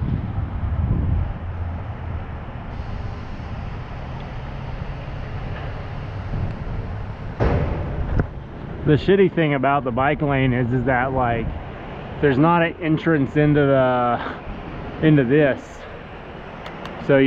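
Wind rumbles against the microphone of a moving bicycle.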